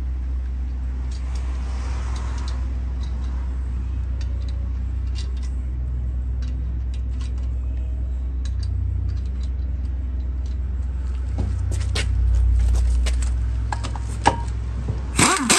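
Metal lug nuts click and scrape as a hand threads them onto a wheel.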